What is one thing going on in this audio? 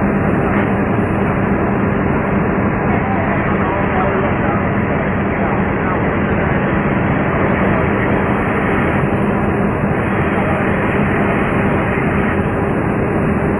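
A fire engine's engine idles steadily nearby.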